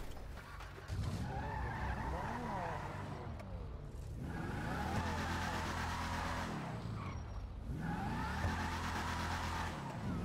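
A car engine starts and revs loudly, rising and falling.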